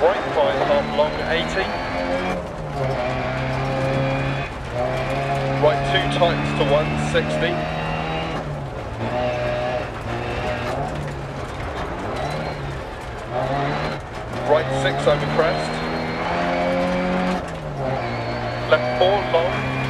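Tyres crunch and skid over gravel.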